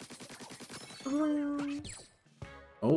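A short bright jingle chimes.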